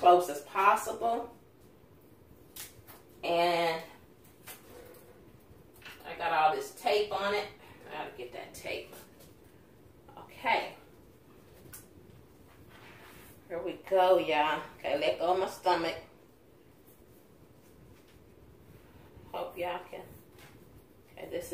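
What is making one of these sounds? A woman talks close by, calmly, in short bursts.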